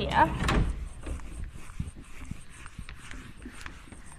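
A felt eraser rubs across a whiteboard.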